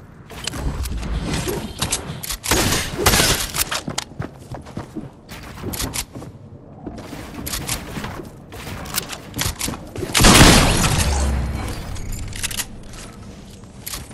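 Building pieces clack and thud rapidly into place.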